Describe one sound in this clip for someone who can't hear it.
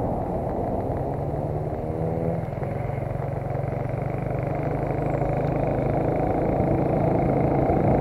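A motor engine hums steadily.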